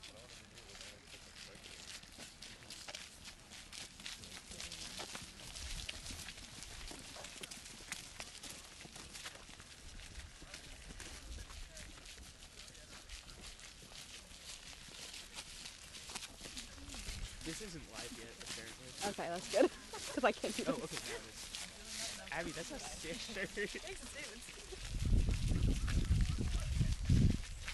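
Footsteps crunch on a snowy path.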